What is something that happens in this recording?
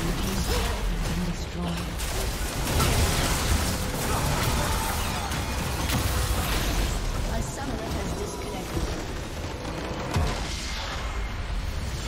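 Game spells blast and crackle in a busy battle.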